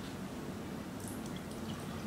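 Milk pours into a glass.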